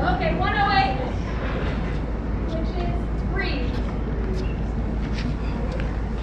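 Footsteps tap on a hard floor close by.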